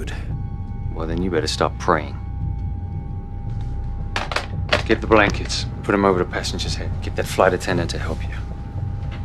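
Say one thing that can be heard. A man speaks firmly over a phone.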